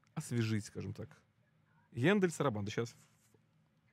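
A man speaks close to a microphone with animation.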